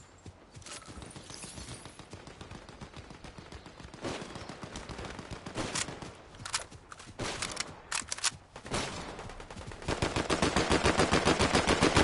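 Footsteps patter quickly over stone and grass.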